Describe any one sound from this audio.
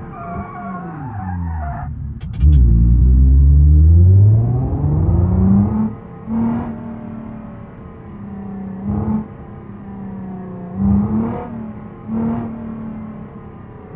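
A car engine accelerates through the gears, its pitch rising and dropping at each shift.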